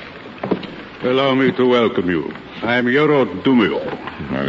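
A man speaks with animation through an old radio broadcast.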